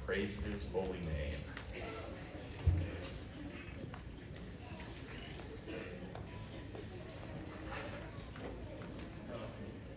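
A crowd of young people chatter and murmur in a large echoing hall.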